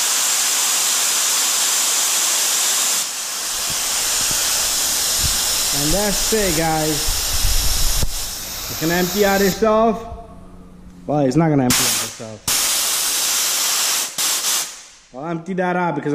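An air compressor motor runs with a loud, steady roar.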